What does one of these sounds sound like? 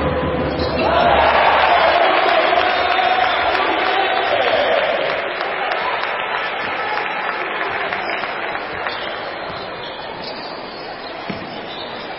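A crowd cheers and roars loudly in a large echoing hall, then slowly quiets down.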